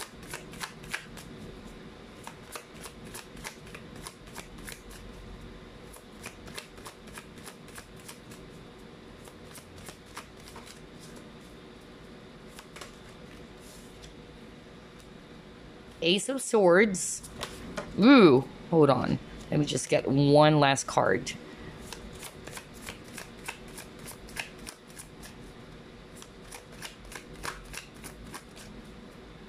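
Playing cards riffle and flick rapidly as a deck is shuffled by hand.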